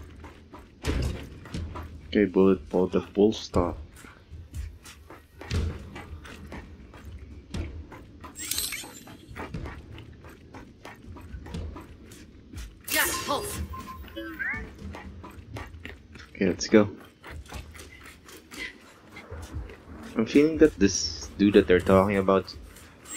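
Heavy boots thud and clank in quick steps on a metal floor.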